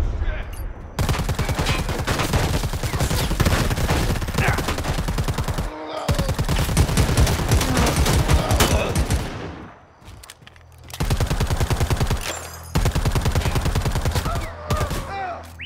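Rapid gunfire rattles in long bursts.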